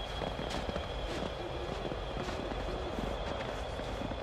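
Footsteps crunch softly through snow.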